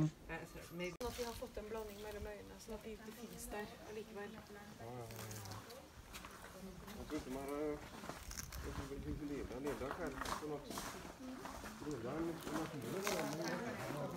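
A tortoise crunches and munches on a juicy stalk.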